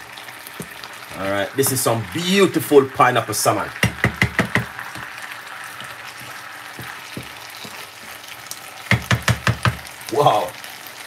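A wooden spoon stirs and scrapes in a pan of stew.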